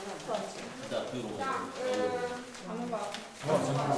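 Paper rustles as it is sorted by hand.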